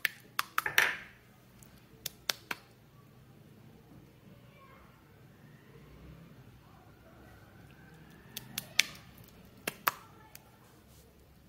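Slime squelches and pops wetly as hands squeeze it.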